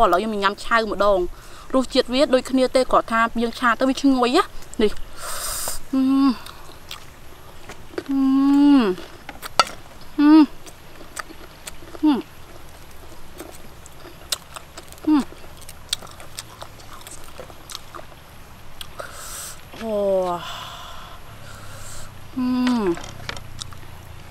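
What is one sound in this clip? A young woman hums and exclaims with pleasure close by.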